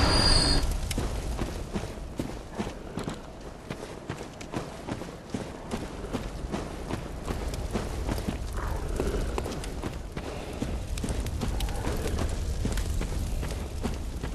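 Footsteps crunch steadily on rough ground.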